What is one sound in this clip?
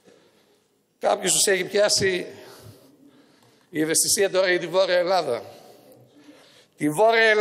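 An elderly man speaks formally into a microphone in a large echoing hall.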